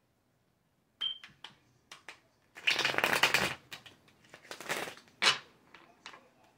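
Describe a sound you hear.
Playing cards riffle and flutter as they are shuffled by hand.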